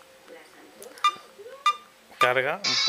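A phone beeps as its volume is changed.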